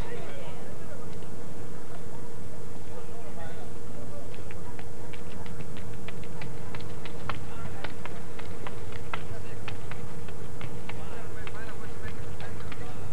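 A group of young women chatters in the distance.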